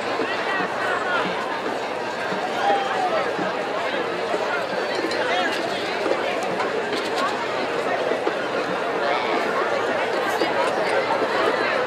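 A large crowd murmurs and chatters in an open stadium.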